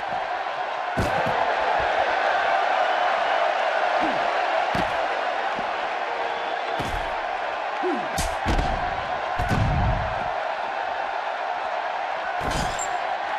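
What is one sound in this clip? Heavy thuds of bodies slamming onto a hard floor ring out.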